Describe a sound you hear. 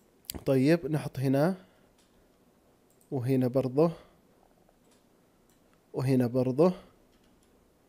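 A man speaks calmly into a close microphone in short phrases.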